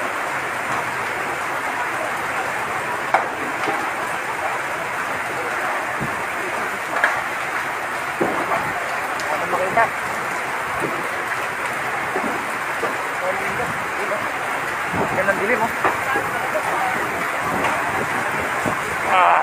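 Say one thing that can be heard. A large fire roars and crackles close by.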